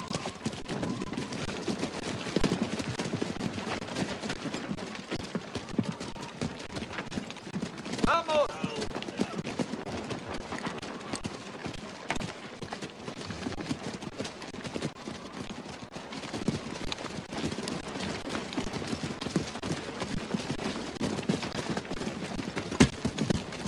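Many soldiers scramble and run over rough ground.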